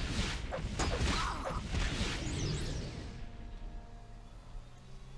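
A magic spell bursts with a fiery whoosh.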